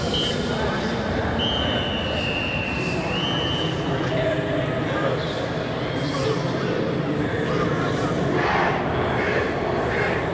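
A marching band plays loudly in a large echoing stadium.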